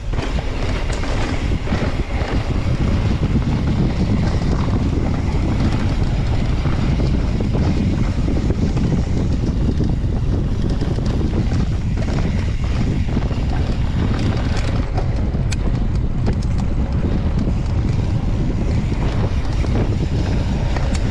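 Mountain bike tyres rumble and crunch over a dirt trail.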